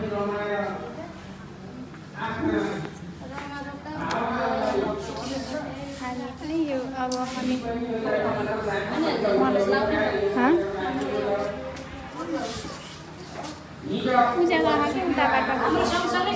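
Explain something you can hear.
Several women chatter in the background.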